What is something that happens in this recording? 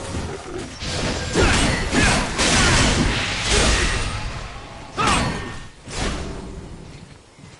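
Weapons clash and magic blasts burst in a fight.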